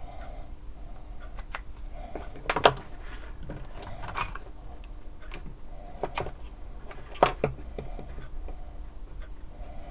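Small pieces of wood knock and click against each other.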